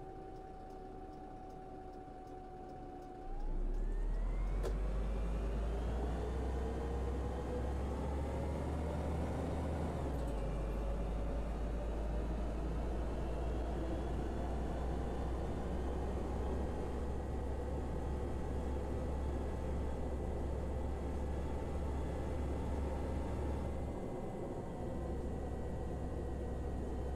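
A bus engine idles, then revs up as the bus pulls away and drives steadily along.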